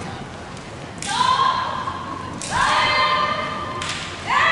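Young women shout sharp, drawn-out cries in a large echoing hall.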